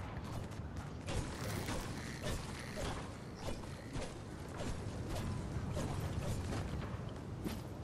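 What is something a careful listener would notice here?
A pickaxe strikes a metal structure with sharp clangs.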